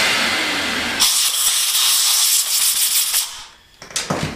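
An air tool hisses and whirs loudly against metal.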